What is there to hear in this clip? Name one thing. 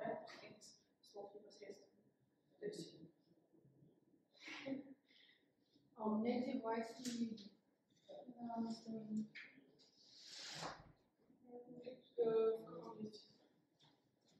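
A young woman speaks calmly to a room, a little way off.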